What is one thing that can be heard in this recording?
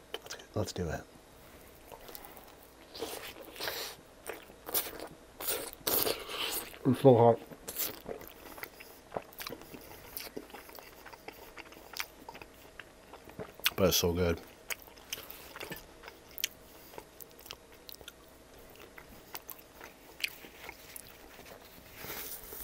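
A man chews wetly and slurps close to a microphone.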